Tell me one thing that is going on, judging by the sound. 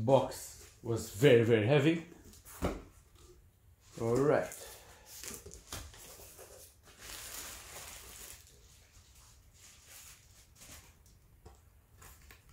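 Cardboard flaps scrape and rustle as a box is pulled open.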